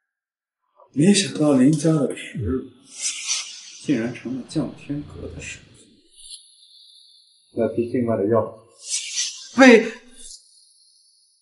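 A man speaks slowly in a low, menacing voice close by.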